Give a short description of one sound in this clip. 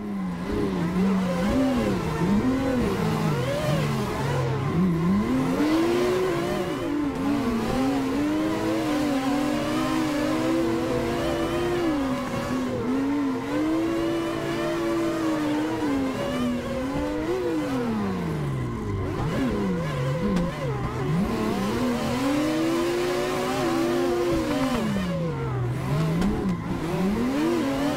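Racing car engines rev hard, rising and falling in pitch.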